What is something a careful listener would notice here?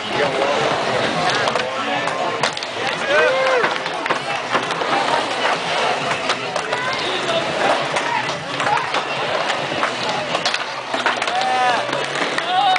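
Skateboard wheels roll and rumble across a wooden ramp.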